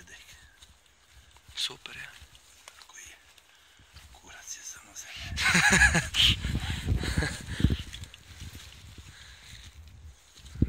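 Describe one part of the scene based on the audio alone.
Gloved hands scrape and crumble dry soil close by.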